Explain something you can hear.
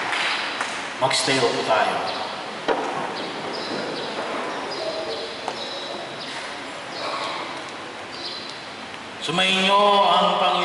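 A man speaks through a microphone and loudspeakers in a large echoing hall.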